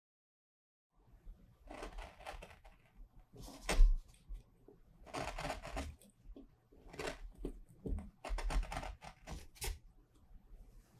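A sharp blade scrapes and gouges in short strokes.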